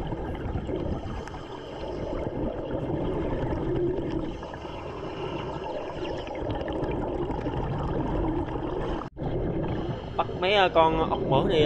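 Hands scrape and dig in soft sand underwater.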